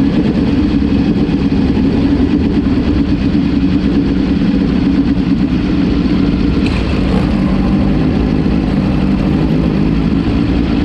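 Other racing car engines buzz nearby.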